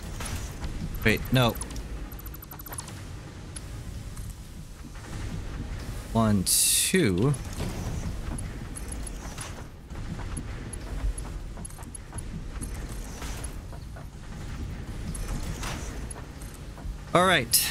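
Machine parts snap into place with short sweeping electronic tones.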